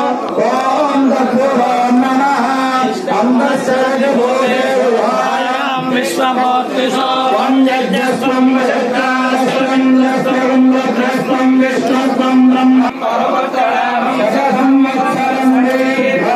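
A man chants steadily into a microphone, heard through a loudspeaker.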